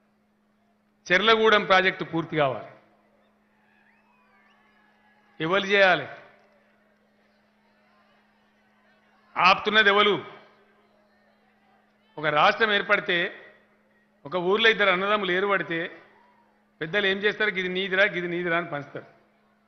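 A man speaks forcefully into a microphone in short bursts over a public address system.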